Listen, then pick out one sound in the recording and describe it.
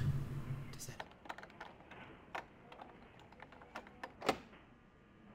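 A door handle clicks and rattles.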